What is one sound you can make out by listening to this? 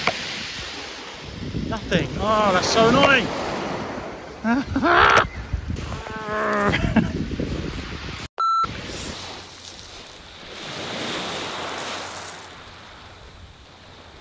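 Small waves wash and break on a pebble shore.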